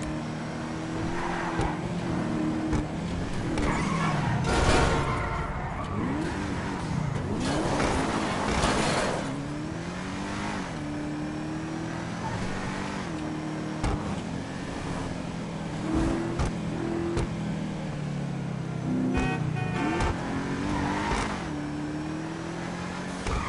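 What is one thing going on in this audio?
A car engine revs and hums steadily.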